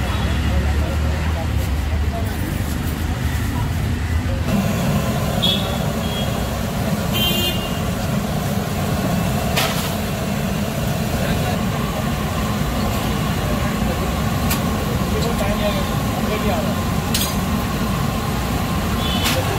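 A busy street crowd murmurs nearby.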